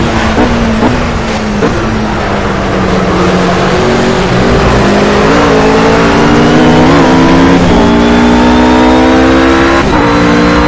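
A GT3 race car engine accelerates through the gears.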